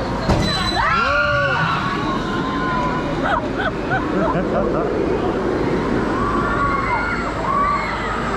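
A roller coaster train rumbles and clatters as it pulls away.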